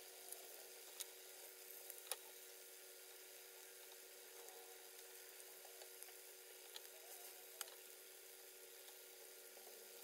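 A metal spatula clinks and scrapes against a frying pan.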